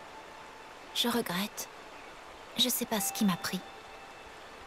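A young woman speaks softly and sadly.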